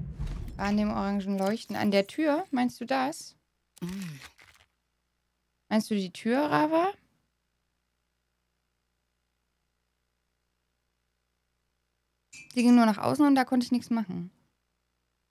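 A young woman talks casually into a close microphone, in short bursts with pauses.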